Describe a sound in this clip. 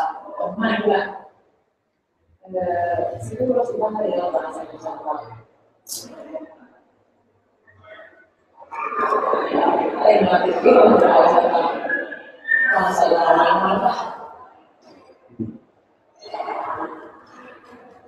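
A man speaks in pauses, heard at a distance in an echoing room.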